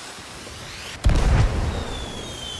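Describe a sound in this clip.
Fireworks burst with a loud bang.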